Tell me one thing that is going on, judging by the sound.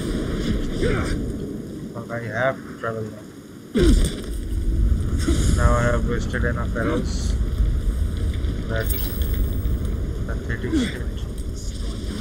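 Feet scramble on stone while climbing.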